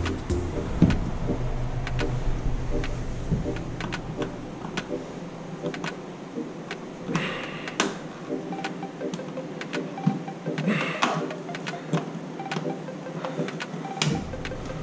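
A ratchet clicks rapidly as a bolt is turned.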